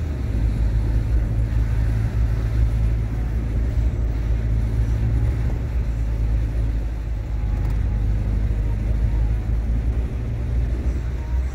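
A car engine hums steadily at a low pitch.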